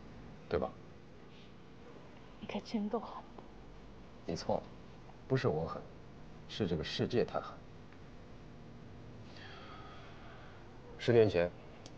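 A young woman speaks softly and teasingly close by.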